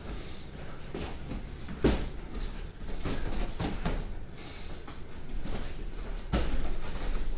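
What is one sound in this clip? Sneakers shuffle and squeak on a padded ring floor.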